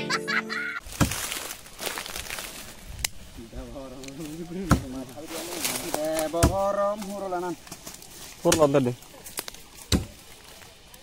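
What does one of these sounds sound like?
Sharp blows knock against a tree trunk.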